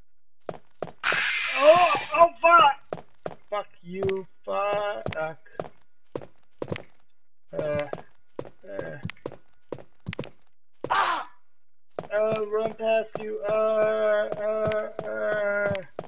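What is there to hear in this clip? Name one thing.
A zombie groans and moans.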